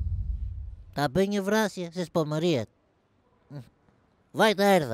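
A man speaks loudly and with emotion, close by.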